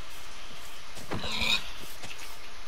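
A pig squeals as it is struck.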